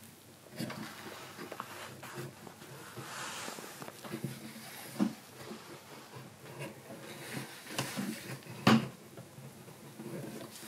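A chisel scrapes and cuts into wood with short strokes.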